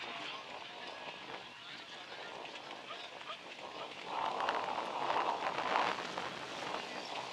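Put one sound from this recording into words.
Horse hooves thud on dirt at a trot.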